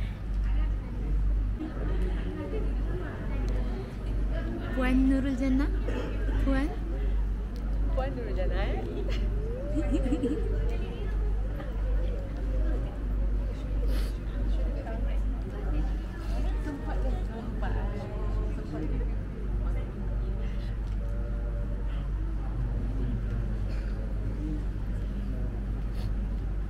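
A crowd of women cheers and chatters in an echoing hall.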